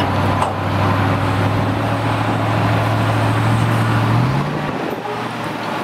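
Sand pours and slides out of a dump truck onto the road.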